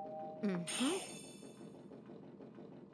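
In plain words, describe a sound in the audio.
A bright magical chime sparkles and rings out.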